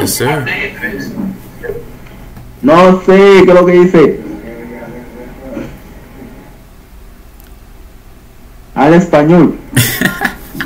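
A young man talks close to a microphone, at times loudly drawing out his words.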